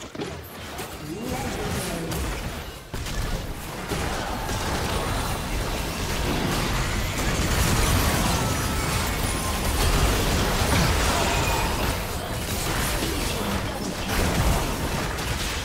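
Magic blasts and impacts crackle and boom in a video game battle.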